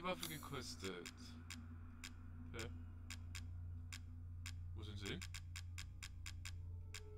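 Short menu clicks tick at an uneven pace.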